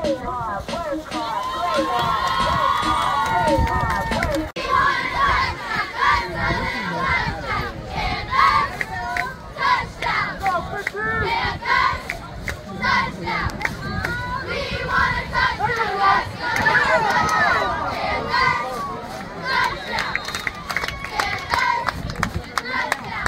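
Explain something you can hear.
A group of young girls shout cheers together outdoors.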